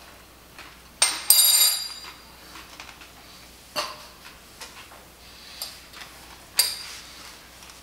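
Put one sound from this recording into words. A man crunches on dry food.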